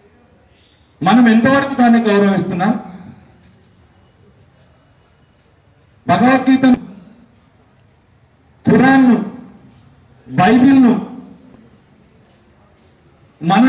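A man speaks loudly and with emphasis into a microphone, in short bursts with pauses between them, heard outdoors through a loudspeaker.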